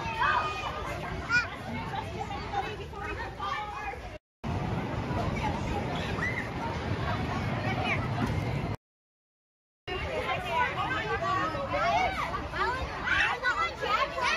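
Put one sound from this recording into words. Girls talk and squeal excitedly nearby.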